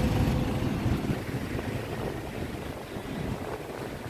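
A motorbike engine passes close by.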